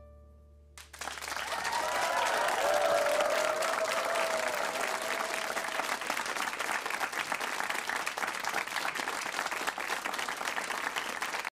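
An audience claps and cheers loudly in a large room.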